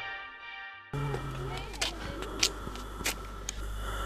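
Shoes step slowly on pavement.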